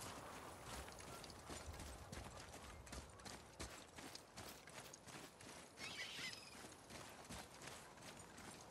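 Heavy footsteps crunch on stone and gravel.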